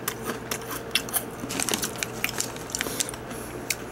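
Crunchy snack sticks clatter against each other.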